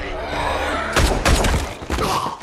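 A gunshot bangs sharply.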